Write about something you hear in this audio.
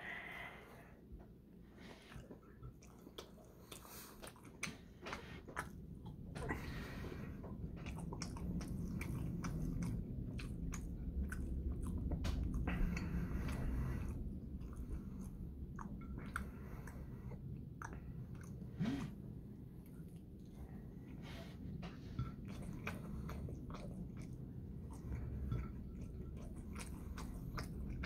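A young man chews food loudly close by.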